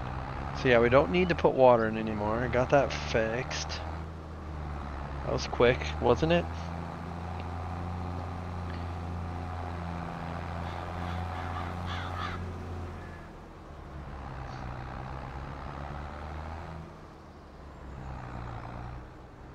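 A tractor engine chugs steadily.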